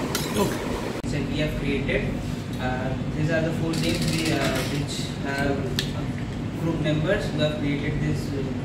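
A young man explains with animation, close by.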